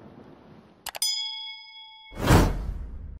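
A bell chimes once.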